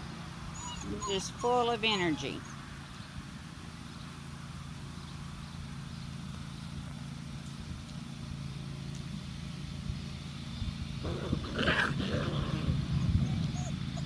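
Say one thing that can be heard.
Puppies yelp and whine while playing.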